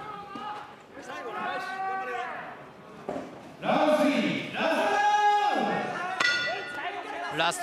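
A man gives instructions in a large echoing hall.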